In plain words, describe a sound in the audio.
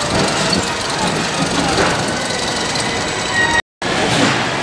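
A roller coaster rattles along its track overhead.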